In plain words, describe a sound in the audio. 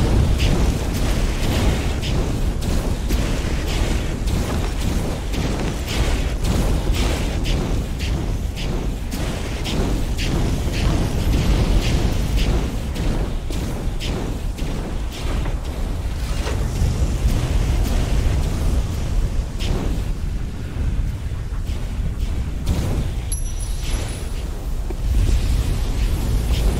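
Footsteps slap quickly on stone.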